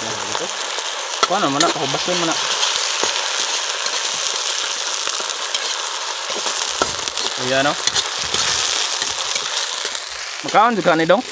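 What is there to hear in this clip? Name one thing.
Food sizzles loudly in a hot wok.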